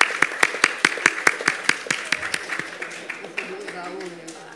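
An audience applauds with quick, steady claps that slowly fade.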